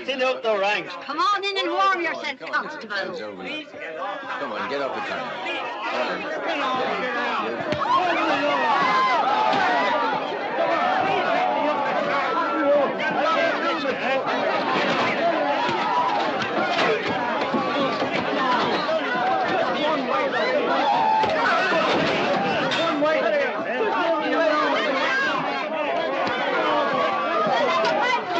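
A crowd of men and women shout and clamour close by.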